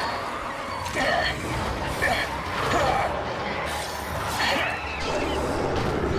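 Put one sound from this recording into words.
A creature snarls and shrieks close by.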